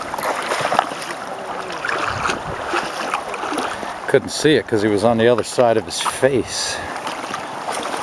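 A fish flaps and splashes in the water.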